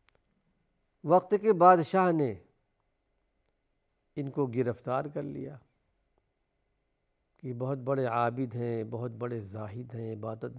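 An elderly man speaks calmly and slowly into a microphone, pausing between phrases.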